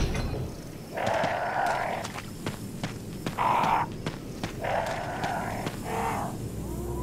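A crow caws loudly.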